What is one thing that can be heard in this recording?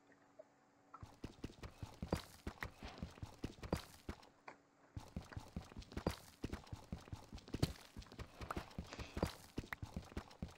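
A pickaxe chips rapidly at stone, with quick repeated knocks.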